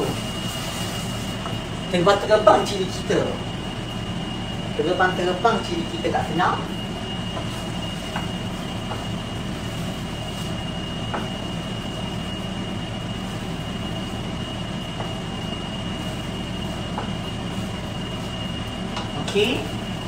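A spoon clinks and scrapes against a cooking pot.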